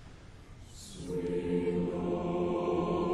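An orchestra begins to play a loud, sustained chord.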